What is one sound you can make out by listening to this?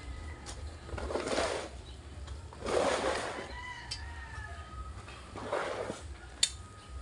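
A shovel scrapes through gravel and rubble.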